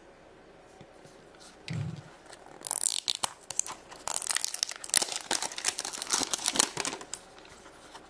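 Plastic packaging crinkles and rustles as hands open a box.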